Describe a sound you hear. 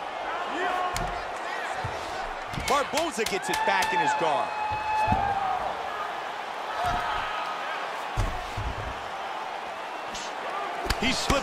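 Punches thud heavily against a body.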